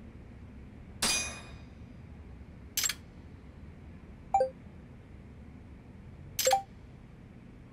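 A soft whooshing swish sounds as a message is sent.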